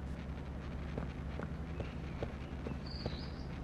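Footsteps tap softly on a hard path.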